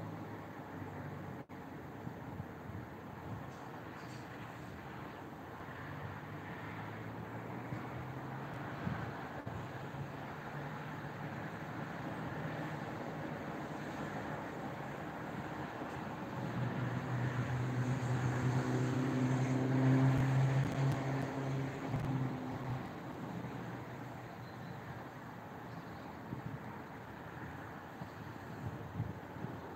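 Wind rustles softly through pine branches outdoors.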